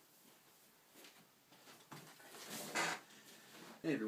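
Clothes rustle as a young man moves and sits down.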